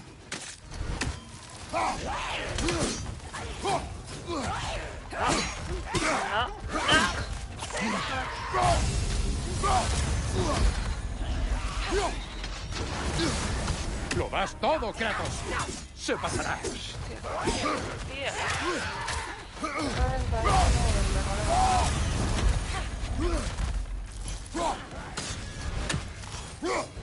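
Enemies grunt and shriek as they attack.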